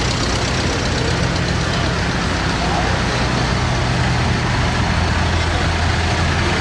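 An old tractor engine chugs steadily close by.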